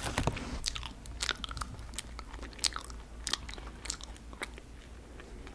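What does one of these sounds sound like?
Crunchy snacks crunch loudly as they are bitten, very close.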